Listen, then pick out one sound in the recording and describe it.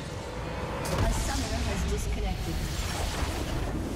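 A large crystal shatters in a booming explosion.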